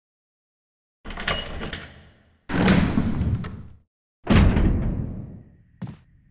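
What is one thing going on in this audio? A heavy door creaks open and thuds.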